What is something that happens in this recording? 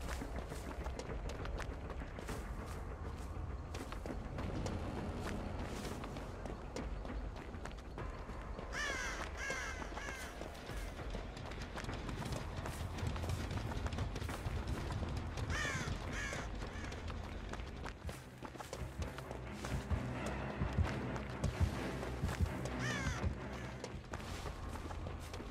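Footsteps run through grass and over dirt.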